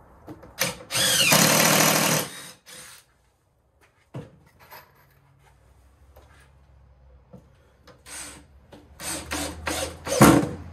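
A cordless drill whirs loudly in short bursts.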